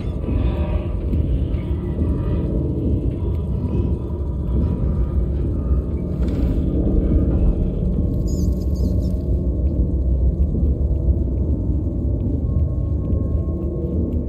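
Small footsteps patter on a metal floor.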